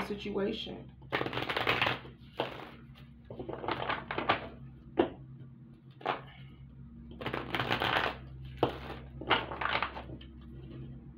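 Cards riffle and flutter as a deck is shuffled.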